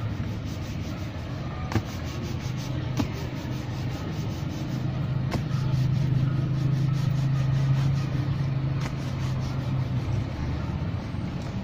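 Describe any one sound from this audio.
A cloth rubs and snaps briskly against a leather shoe.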